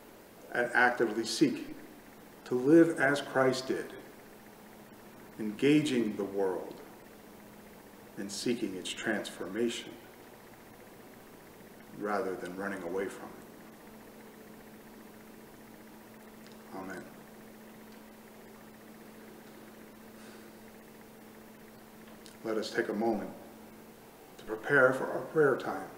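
An older man speaks calmly and slowly in short phrases, close to a microphone, with long pauses.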